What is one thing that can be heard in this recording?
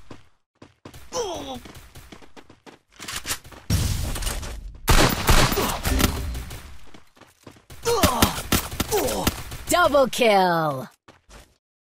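A young man talks excitedly into a microphone.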